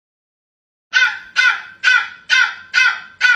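A small dog yaps repeatedly in short, high, squeaky bursts.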